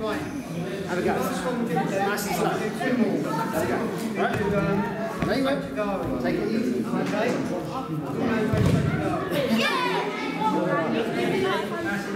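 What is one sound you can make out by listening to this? An older man speaks calmly, explaining, in a large echoing hall.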